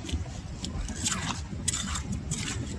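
A metal rake scrapes and clicks through wet mud and shells.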